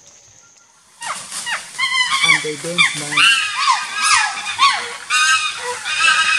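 Chimpanzees hoot and scream loudly nearby.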